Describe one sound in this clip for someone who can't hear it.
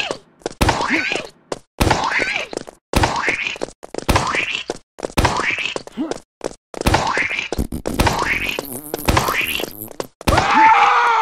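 A bazooka fires again and again, with quick popping blasts.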